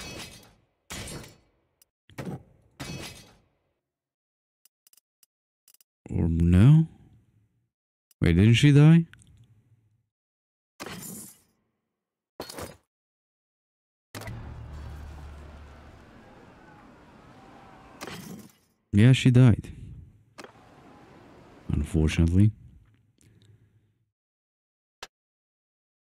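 Short game menu sounds click and chime.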